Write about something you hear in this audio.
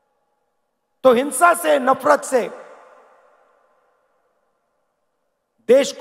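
A man speaks forcefully into a microphone over loudspeakers, his voice echoing across a large open space.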